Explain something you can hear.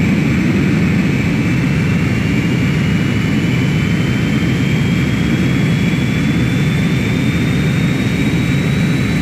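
A high engine whine slowly rises in pitch.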